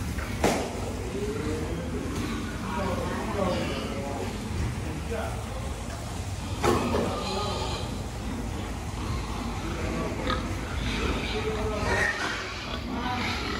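Many pigs grunt close by in an echoing barn.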